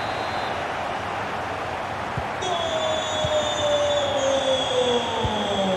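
A large crowd roars steadily, as if in a stadium.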